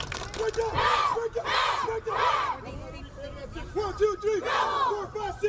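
A group of young boys chant and shout together outdoors.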